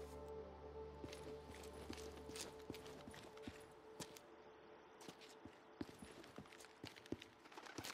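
Footsteps tap on asphalt.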